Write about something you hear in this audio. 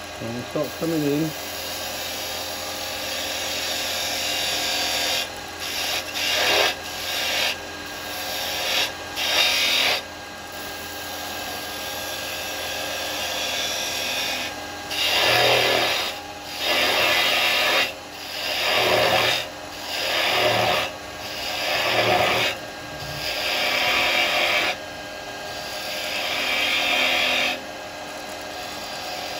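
A lathe hums steadily as it spins.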